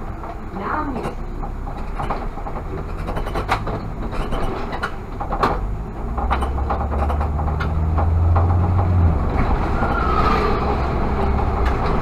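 Cars pass by in the opposite direction.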